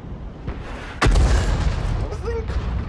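A cannon fires with a loud, sharp boom.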